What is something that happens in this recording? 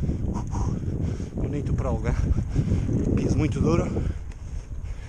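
A man talks close to the microphone.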